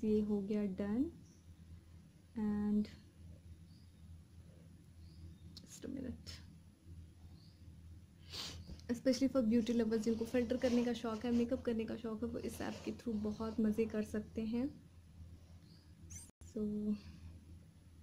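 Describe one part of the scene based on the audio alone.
A young woman talks close to a phone microphone, with animation.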